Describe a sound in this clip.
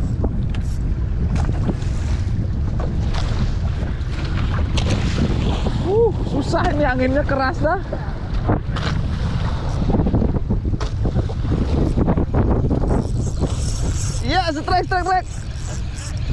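Waves splash and slap against a boat's hull.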